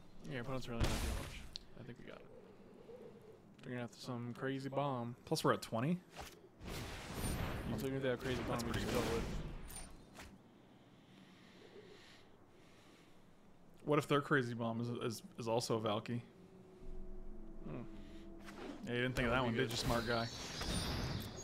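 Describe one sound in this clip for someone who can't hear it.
A man talks with animation over a microphone.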